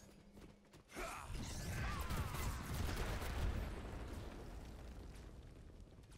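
Magic blasts crackle and burst during a fight.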